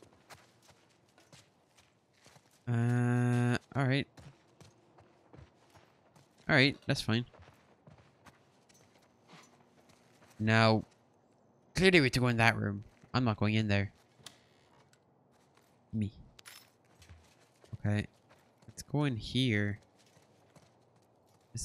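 Footsteps crunch softly on debris.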